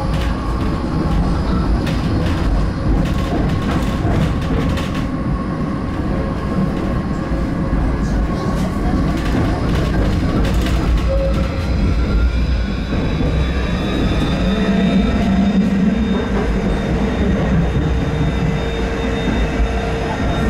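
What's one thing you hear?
A tram's motor hums and its wheels rumble steadily on the rails.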